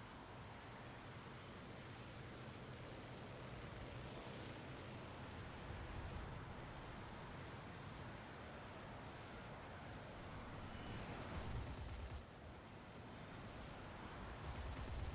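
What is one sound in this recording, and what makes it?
A propeller plane's engine drones steadily as it flies low.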